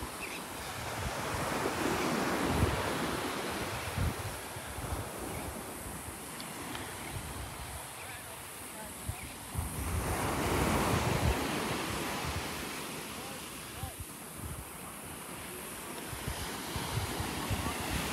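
Wind gusts blow outdoors.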